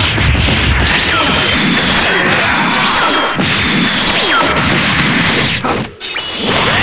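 Rapid punches and kicks land with thudding impacts.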